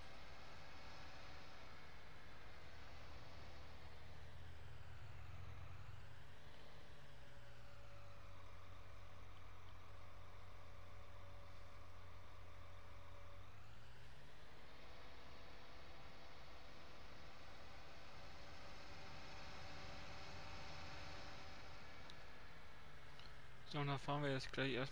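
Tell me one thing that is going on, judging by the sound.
A tractor engine hums steadily, its pitch rising and falling with speed.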